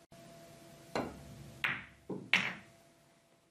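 A billiard ball knocks against the cushions of a table.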